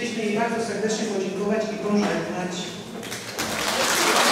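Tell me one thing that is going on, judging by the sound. A middle-aged woman speaks briefly through a microphone and loudspeakers.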